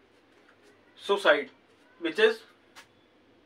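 A man speaks in short bursts.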